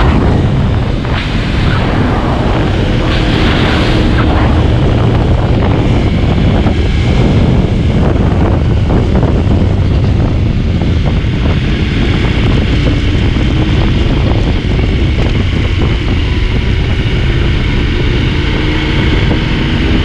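A motorcycle engine roars at high revs close by.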